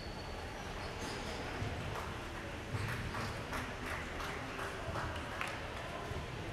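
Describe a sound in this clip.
A ping-pong ball clicks back and forth on a table and paddles.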